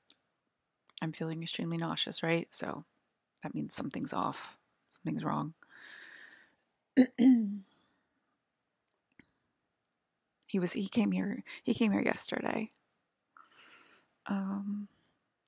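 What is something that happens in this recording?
A woman speaks calmly and close to a microphone, in short phrases with pauses.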